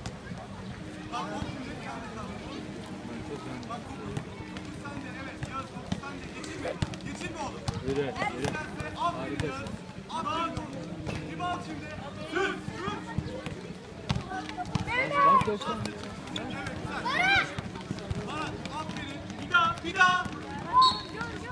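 Children shout and call out during play.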